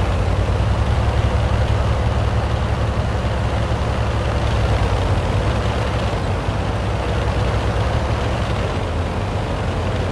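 A tank engine rumbles as it drives.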